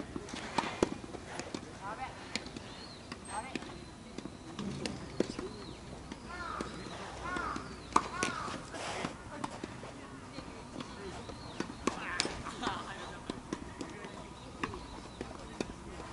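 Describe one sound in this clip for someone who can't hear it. Tennis balls are struck with rackets, with sharp pops echoing across open courts.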